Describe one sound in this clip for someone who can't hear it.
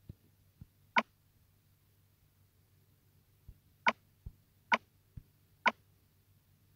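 Short game interface clicks tick now and then.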